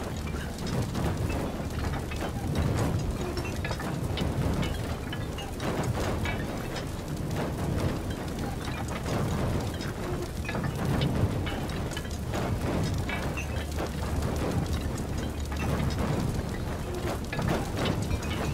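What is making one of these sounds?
Metal chains creak and clank as cages swing.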